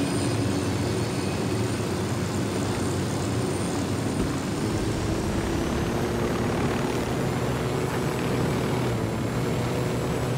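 A helicopter's rotor blades thump steadily as it flies low.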